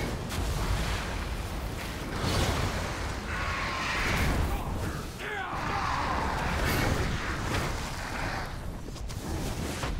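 Fiery blasts roar and whoosh.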